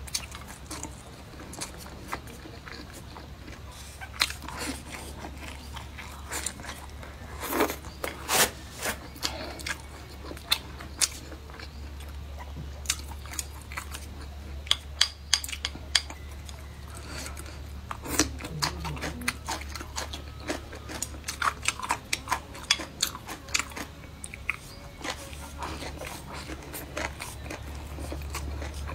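A young woman chews food close to the microphone.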